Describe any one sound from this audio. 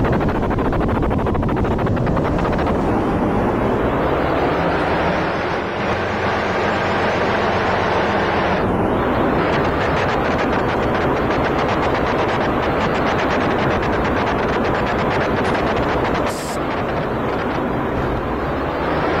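Train wheels click and clatter over rail joints.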